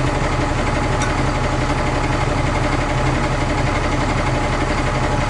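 A crane's hydraulics whine as the arm swings.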